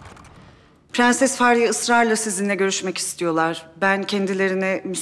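A young woman speaks pleadingly, close by.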